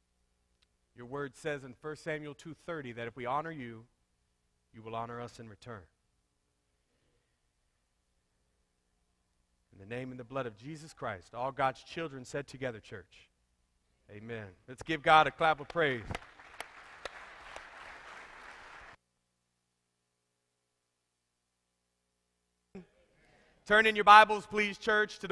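A man speaks slowly and solemnly through a microphone in a large room.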